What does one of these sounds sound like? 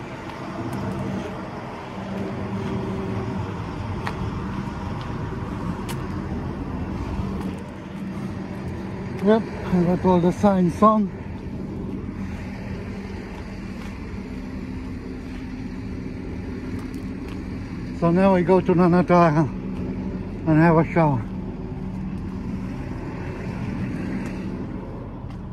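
A truck engine idles with a steady low hum.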